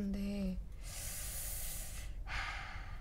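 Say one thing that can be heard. A sheet of paper rustles.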